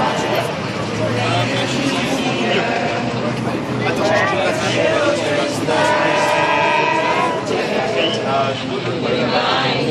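A crowd of men and women talks and shouts loudly outdoors.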